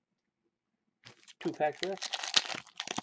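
A foil card wrapper crinkles and tears open.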